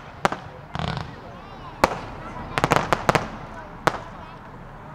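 Fireworks burst with sharp crackling bangs.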